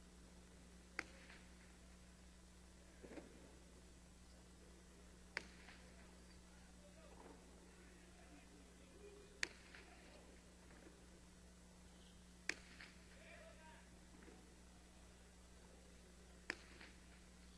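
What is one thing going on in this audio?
A hard ball smacks sharply against a wall in a large echoing court.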